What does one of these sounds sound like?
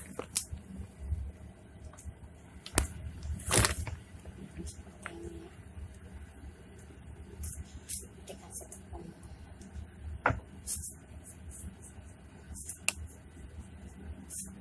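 Light knocks and taps sound as items are handled on a counter.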